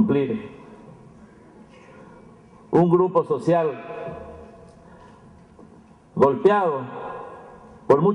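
An elderly man speaks formally into a microphone, heard through a loudspeaker in an echoing hall.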